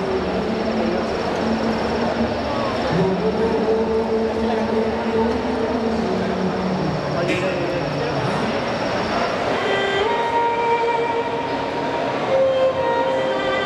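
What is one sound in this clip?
Electronic keyboard music plays through loudspeakers in a large echoing hall.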